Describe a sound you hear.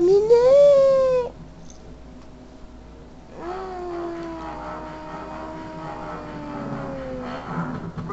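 Tinny game music plays through a small handheld speaker.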